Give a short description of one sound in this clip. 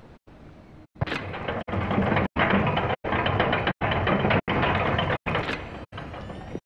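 A heavy metal lever grinds and rumbles loudly as it is pulled down.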